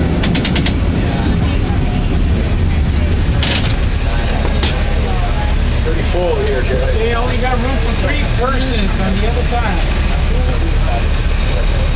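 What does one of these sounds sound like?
Men and women chatter and call out close by.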